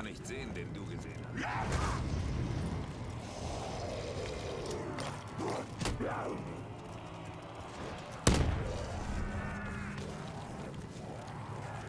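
A zombie growls close by.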